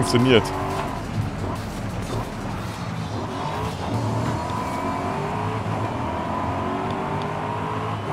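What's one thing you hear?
A sports car engine roars and revs as it races.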